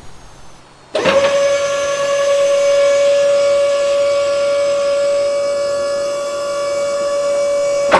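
A hydraulic motor whines steadily as loading ramps lower.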